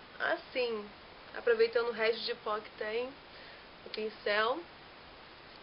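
A young woman talks calmly and closely into a microphone.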